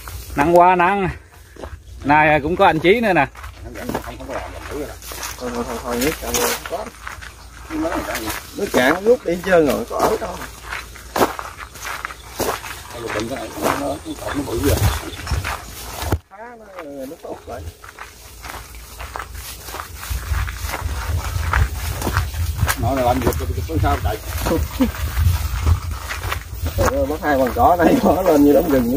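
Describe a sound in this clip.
A man talks with animation close by, outdoors.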